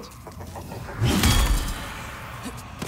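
A heavy blade swings through the air and strikes with a crash.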